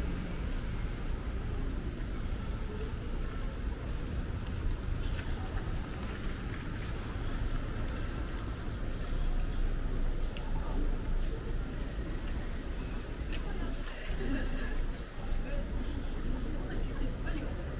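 Light rain patters on the wet pavement.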